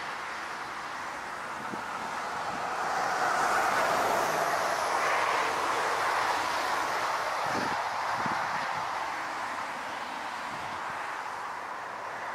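A large jet airliner roars overhead as it approaches, swelling louder and then easing off.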